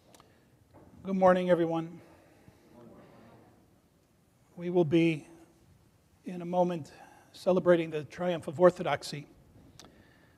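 An elderly man chants loudly in a resonant hall, heard through a microphone.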